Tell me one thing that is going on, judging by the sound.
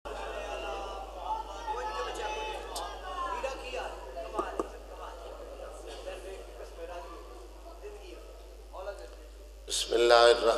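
A man recites with feeling into a microphone, heard through loudspeakers in an echoing hall.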